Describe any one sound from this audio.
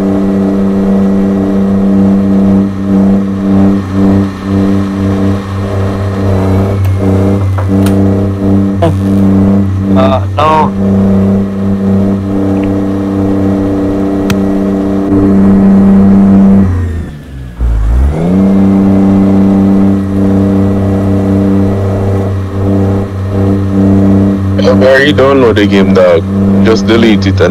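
A heavy truck engine drones steadily and rumbles low.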